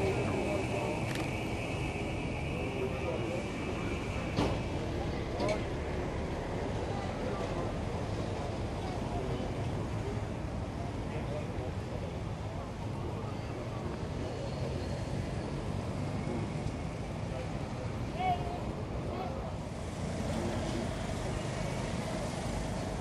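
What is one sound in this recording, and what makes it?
Motorcycle engines hum and pass by on a road.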